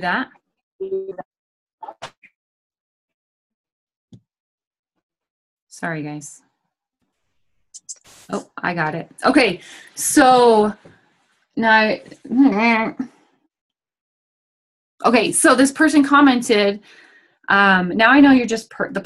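A woman speaks with animation over an online call, pausing now and then.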